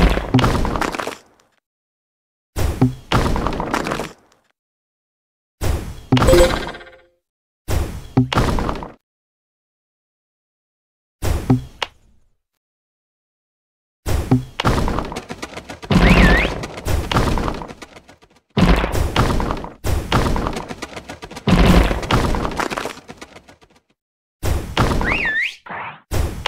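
A bubble shoots off with a soft whoosh.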